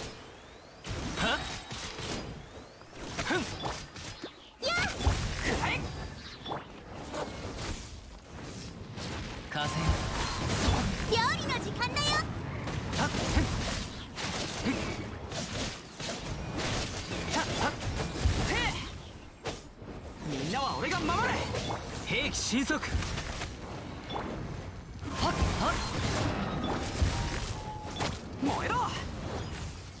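Game explosions boom with deep thuds.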